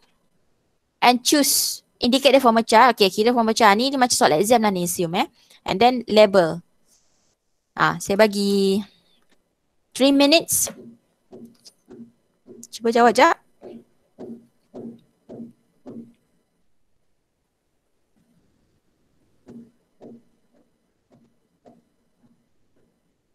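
A woman speaks calmly through an online call, pausing often.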